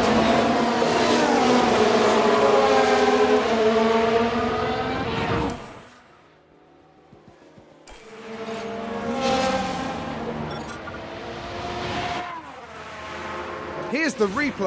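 A racing car engine screams at high revs and shifts pitch as it passes.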